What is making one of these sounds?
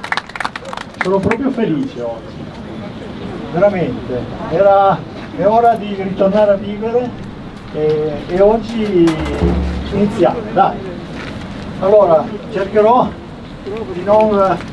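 A man speaks calmly into a microphone, heard over a loudspeaker.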